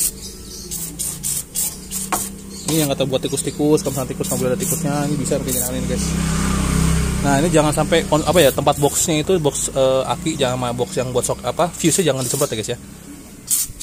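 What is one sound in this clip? An aerosol can hisses as it sprays.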